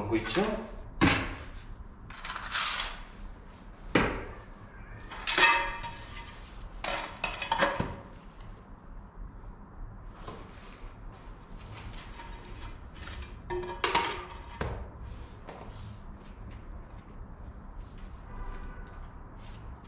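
Ceramic tiles clack and tap as they are set down.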